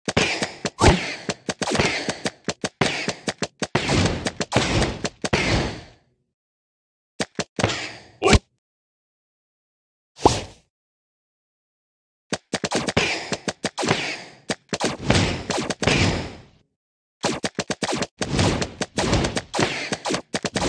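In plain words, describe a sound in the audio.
Quick game sound effects pop and clatter in rapid bursts.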